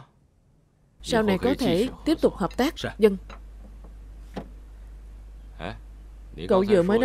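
A second young man answers calmly.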